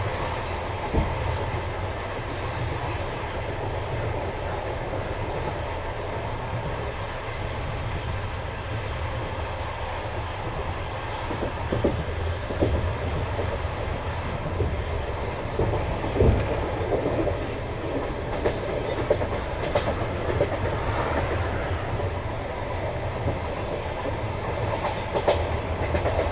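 Train wheels clack now and then over rail joints.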